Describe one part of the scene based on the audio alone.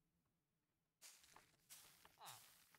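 A soft crunching sound plays as powder is sprinkled on young plants.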